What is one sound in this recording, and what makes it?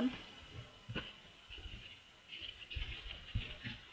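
A soft toy is set down on a table with a light thud.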